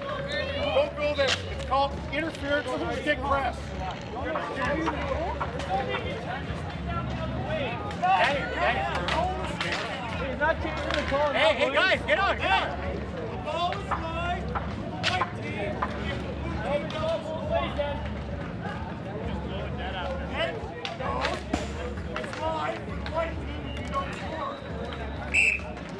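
A street hockey stick taps a plastic ball on asphalt.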